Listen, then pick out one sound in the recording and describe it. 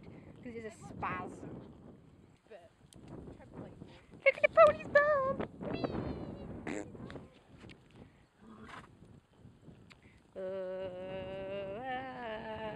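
A horse's hooves thud on a dirt path at a walk.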